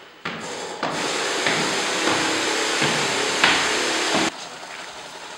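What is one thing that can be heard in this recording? A pressure sprayer hisses loudly in an echoing stairwell.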